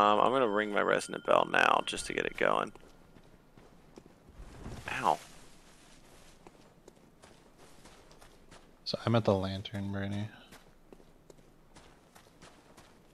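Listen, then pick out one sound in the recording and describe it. Footsteps scuff on rocky ground.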